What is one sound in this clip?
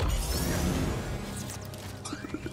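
Energy blades hum and swoosh through the air.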